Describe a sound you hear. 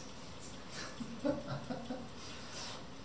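A man laughs briefly nearby.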